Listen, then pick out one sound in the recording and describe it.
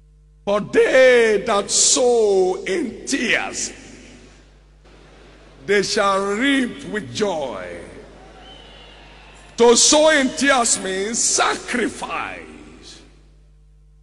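A man preaches loudly and passionately into a microphone in a large echoing hall.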